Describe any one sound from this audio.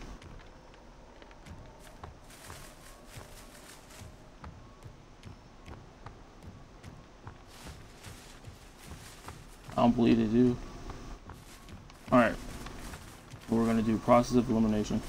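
Footsteps crunch slowly through snow and grass.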